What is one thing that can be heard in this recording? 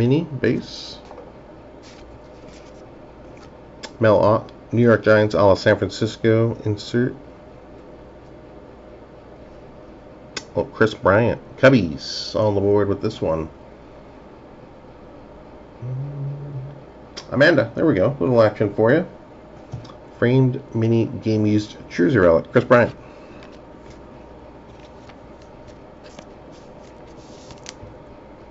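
Trading cards rustle and slide against each other in a hand.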